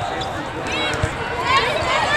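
A volleyball thumps as a player hits it.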